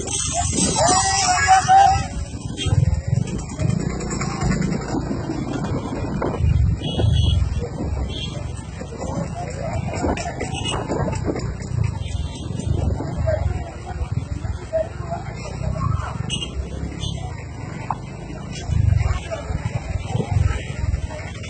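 A crowd of men murmurs and calls out nearby outdoors.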